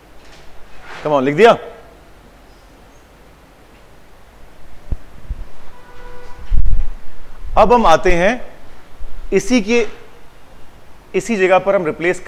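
A man speaks calmly and clearly into a nearby microphone.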